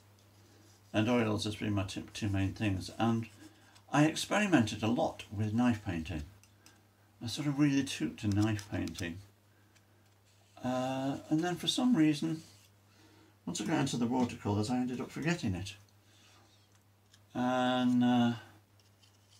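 A man talks calmly close by, in short phrases with pauses.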